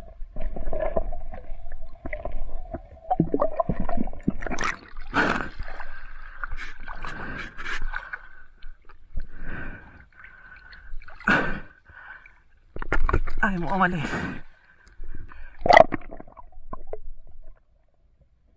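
Water splashes and gurgles close by.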